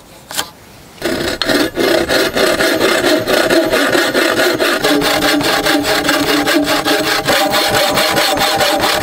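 A bow saw rasps back and forth through a log.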